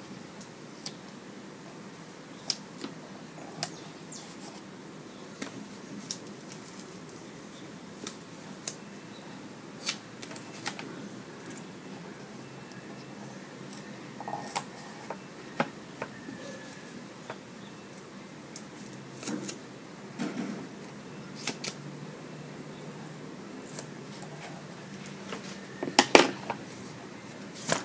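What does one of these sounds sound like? Hands tap and press paper pieces onto a hard surface with soft clicks and knocks.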